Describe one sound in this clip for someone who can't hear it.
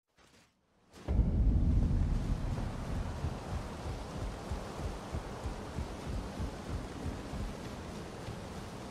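Footsteps thud steadily on a wooden bridge.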